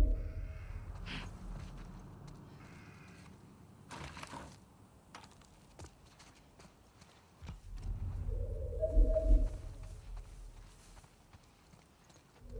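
Footsteps run quickly over concrete and grass.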